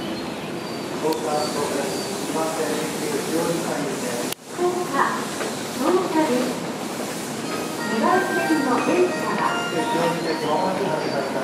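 A crowd of men and women murmurs and chatters nearby.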